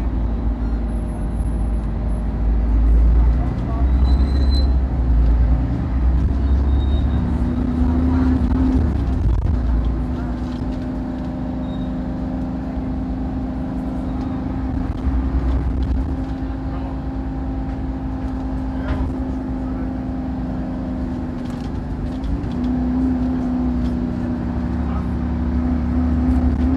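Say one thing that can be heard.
A bus rattles and shakes over the road.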